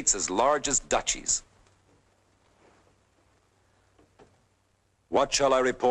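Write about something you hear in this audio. A middle-aged man speaks forcefully, close by.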